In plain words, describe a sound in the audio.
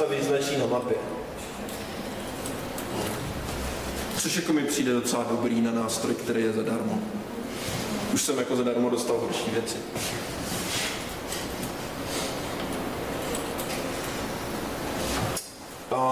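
A man lectures with animation, heard through a microphone.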